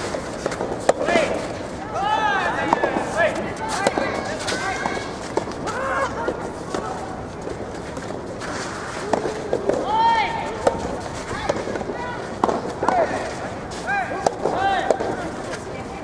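Young men shout short calls across an outdoor court.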